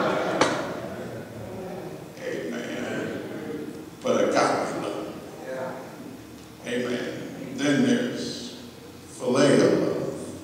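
A man preaches with fervour through a microphone in a large echoing hall.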